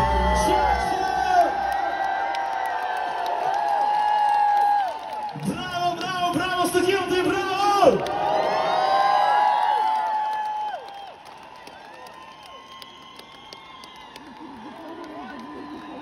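A crowd cheers and sings along.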